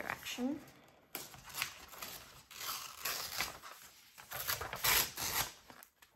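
A sheet of paper is folded and creased.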